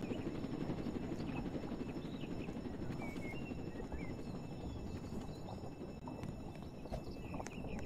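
A helicopter's rotor whirs steadily nearby.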